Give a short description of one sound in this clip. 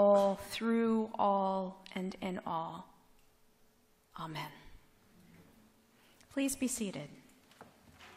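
A woman sings and speaks into a microphone in a large room with a slight echo.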